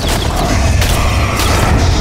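A heavy mace swings through the air with a whoosh.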